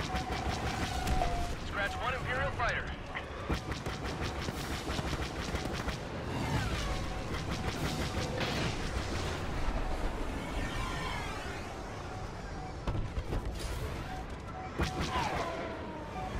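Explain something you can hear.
A starfighter's engines roar steadily.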